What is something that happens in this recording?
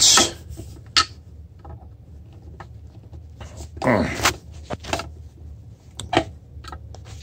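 A metal tool clicks against a plastic case.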